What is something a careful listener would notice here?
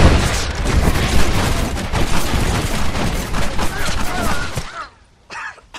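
A volley of rifle shots rings out loudly, with rapid cracks and bangs.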